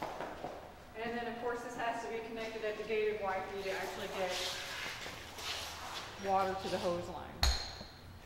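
A woman speaks calmly, explaining.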